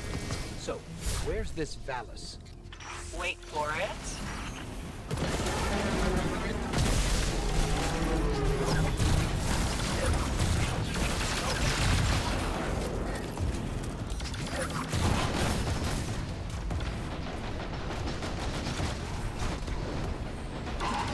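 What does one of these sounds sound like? Gunfire crackles in rapid bursts.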